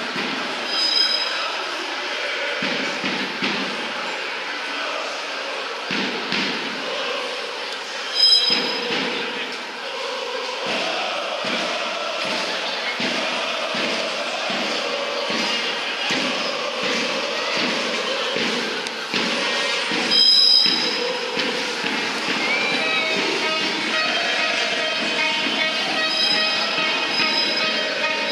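A large crowd cheers and chants in the street outdoors.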